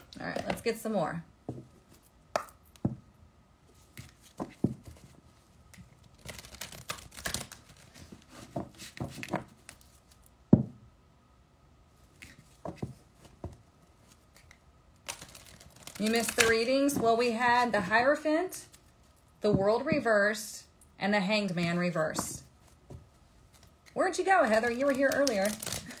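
Cards tap and slap on a table.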